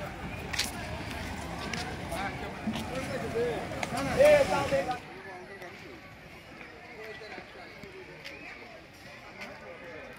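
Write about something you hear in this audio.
A crowd of men and women chatter outdoors.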